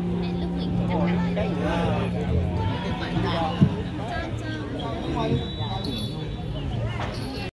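Plucked lutes play a folk tune through loudspeakers.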